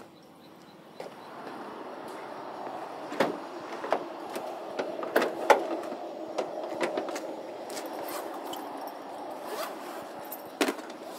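Gear clatters and rustles inside a van.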